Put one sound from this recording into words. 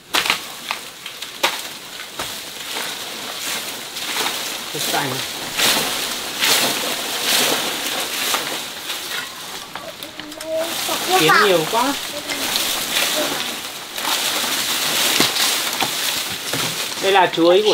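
Leaves rustle and shake.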